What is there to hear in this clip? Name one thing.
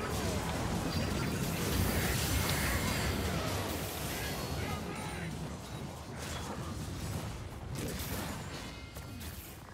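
Video game spell effects blast and crackle loudly.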